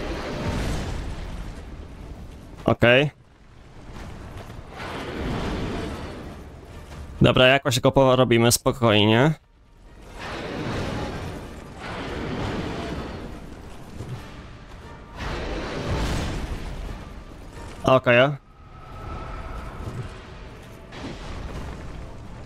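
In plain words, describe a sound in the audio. A sword swishes and clangs in heavy blows.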